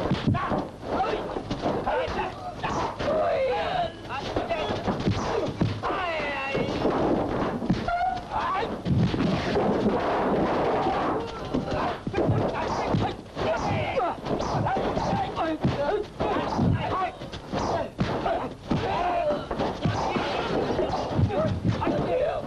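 Blows and thuds land in a fight.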